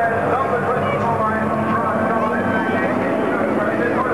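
Diesel racing truck engines roar past on a circuit.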